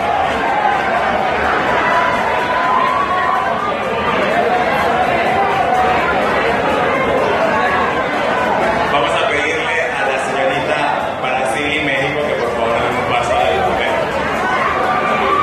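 Young women sing together through loudspeakers in a large hall.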